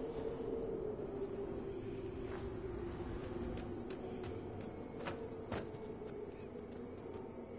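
Footsteps crunch on sandy ground as a game character walks.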